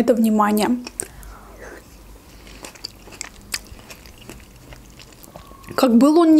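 A young woman chews food with soft, wet, close sounds.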